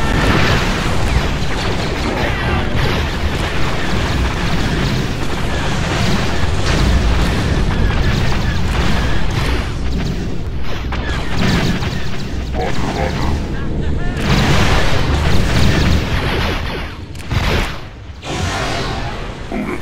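Explosions boom now and then.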